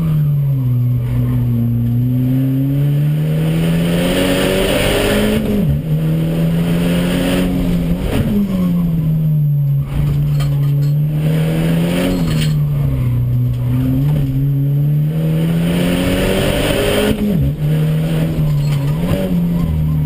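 A race car engine roars loudly from inside the cabin, rising and falling as the driver shifts gears.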